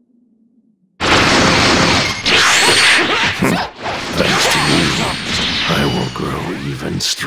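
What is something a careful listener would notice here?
Energy blasts crackle and boom in a fast, loud fight.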